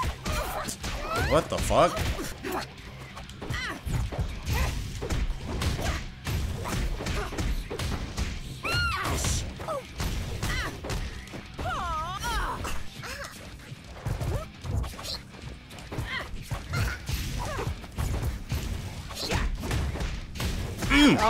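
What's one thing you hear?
Punches and blasts thud and crack in quick bursts during a fight in a video game.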